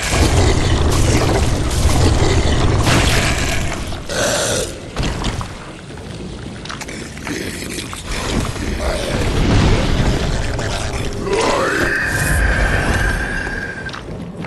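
A blade slashes and strikes flesh with wet thuds.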